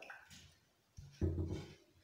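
A hand rubs and presses into dry flour with a soft rustle.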